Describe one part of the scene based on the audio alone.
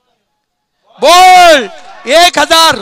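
Men shout loudly in celebration.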